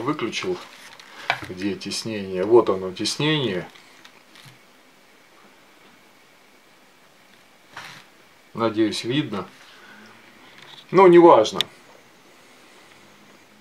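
A leather strap rubs and creaks as hands handle it.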